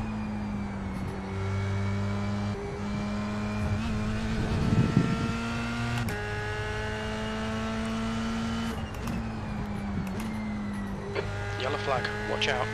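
A racing car engine drones steadily, dropping in pitch with each gear change.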